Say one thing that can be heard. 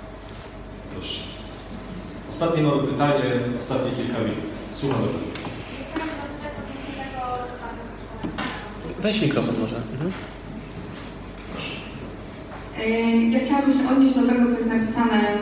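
A man speaks into a microphone close by, calmly and with pauses.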